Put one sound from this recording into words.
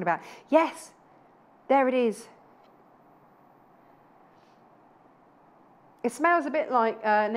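A woman speaks clearly and brightly into a microphone, in short bursts with pauses.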